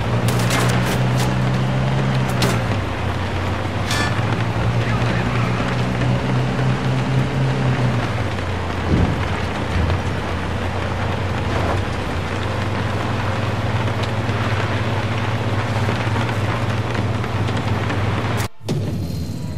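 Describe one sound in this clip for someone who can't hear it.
Heavy rain pours down on a car.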